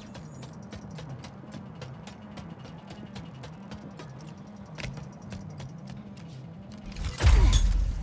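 Footsteps clang quickly on a metal floor.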